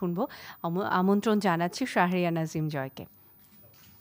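A young woman speaks into a microphone, heard through a loudspeaker.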